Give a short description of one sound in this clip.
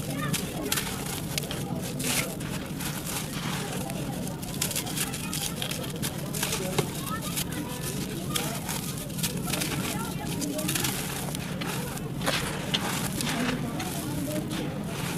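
Clods of dry clay crunch and break apart as hands squeeze them.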